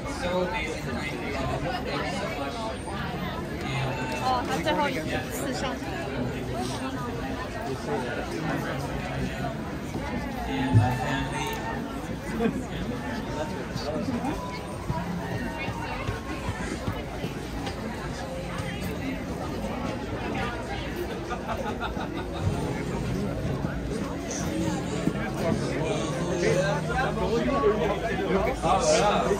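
A crowd of adults chatters all around.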